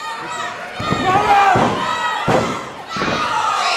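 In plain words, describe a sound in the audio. A referee slaps the mat loudly while counting.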